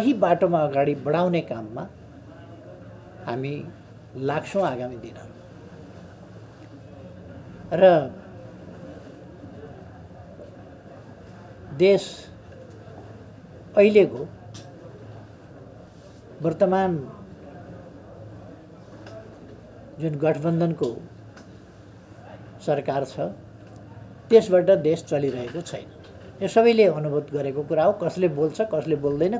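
An elderly man speaks calmly and slowly into nearby microphones, with long pauses.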